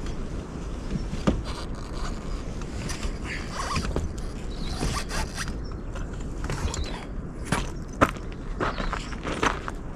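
Footsteps clunk on a metal ladder.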